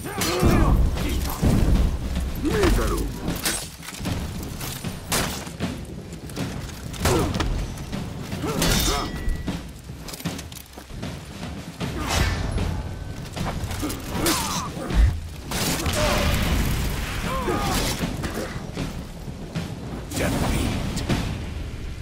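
Steel swords clash and clang in a fight.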